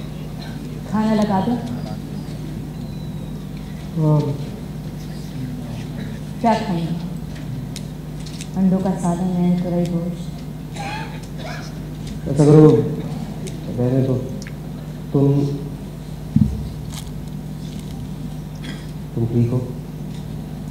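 A man speaks slowly through a microphone, with long pauses.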